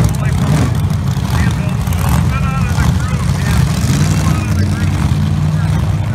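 A race car engine idles nearby with a loud, rough rumble.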